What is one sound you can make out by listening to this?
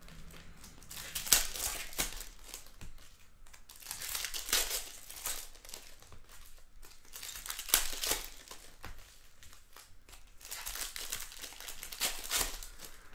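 Foil card wrappers crinkle and tear as packs are ripped open.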